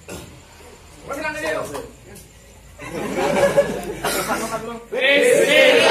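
Young men talk and laugh nearby.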